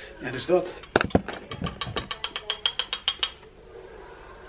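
A spoon clinks rapidly against a cup.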